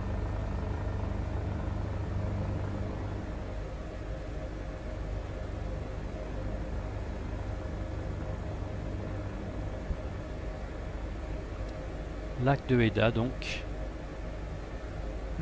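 A helicopter engine and rotor hum steadily from inside the cabin.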